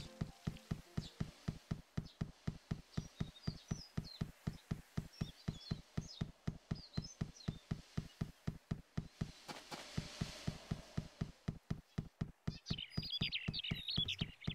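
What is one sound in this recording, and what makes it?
Quick footsteps patter on stone pavement.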